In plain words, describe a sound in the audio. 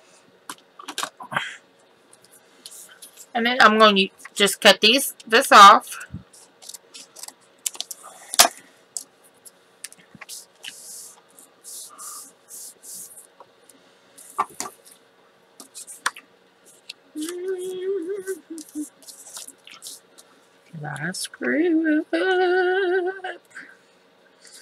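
Paper rustles and slides as hands handle it.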